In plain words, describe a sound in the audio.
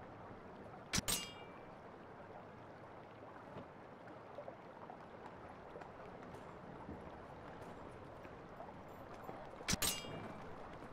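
A soft interface click sounds.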